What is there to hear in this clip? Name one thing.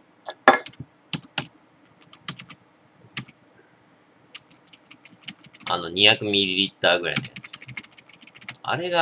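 Fingers tap quickly on a computer keyboard.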